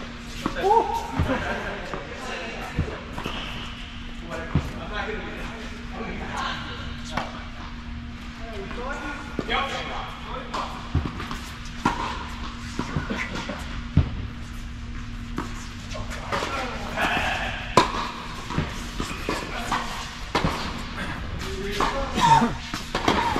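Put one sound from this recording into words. Tennis balls are struck with rackets, with sharp pops echoing in a large hall.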